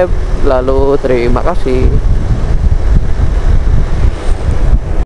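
Wind rumbles and buffets loudly against a riding motorcycle.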